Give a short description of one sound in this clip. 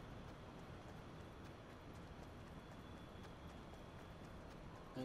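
A stream of water babbles nearby.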